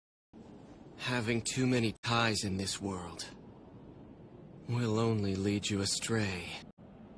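A young man speaks calmly and closely.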